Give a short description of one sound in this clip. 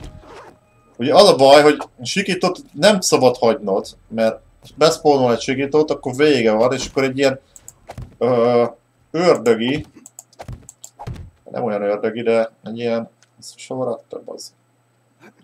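A man talks with animation close to a headset microphone.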